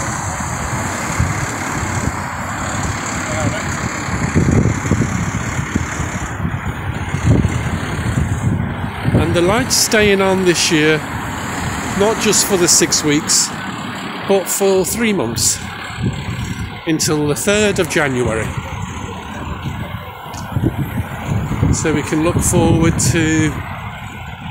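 Cars drive past on a street nearby.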